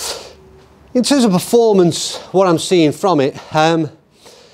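A middle-aged man talks with animation, slightly further off in a small room.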